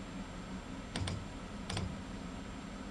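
A control lever clicks twice.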